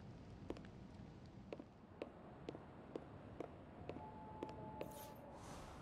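Footsteps tap steadily on a wooden deck.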